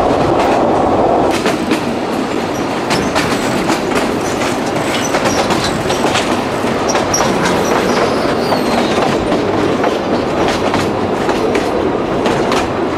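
A train rumbles and rattles along the tracks.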